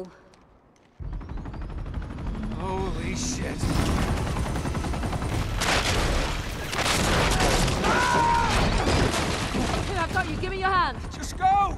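A helicopter's rotor roars close by.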